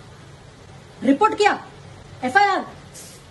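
A young woman speaks loudly and with animation close by.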